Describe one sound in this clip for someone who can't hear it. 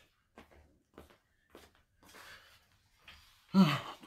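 Clothing rustles as a man sits down.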